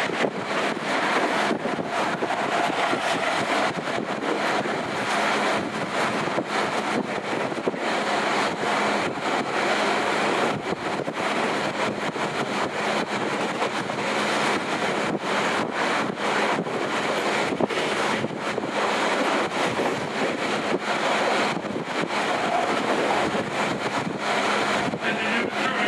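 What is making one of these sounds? A train rumbles steadily as it travels along.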